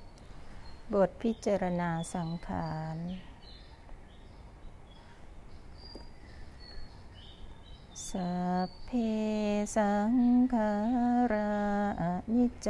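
A group of women chant slowly in unison nearby.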